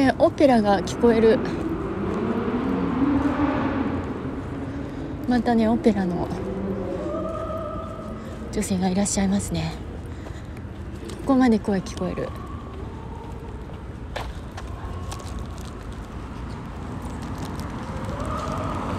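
Emergency sirens wail and warble down a street.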